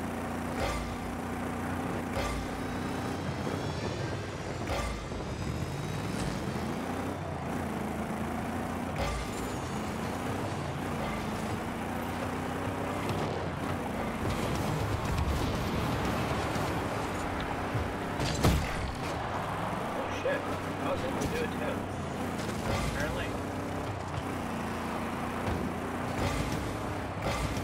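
A game car engine hums and revs up and down.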